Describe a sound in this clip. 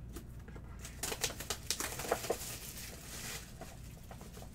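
Plastic wrap crinkles as it is pulled off a box.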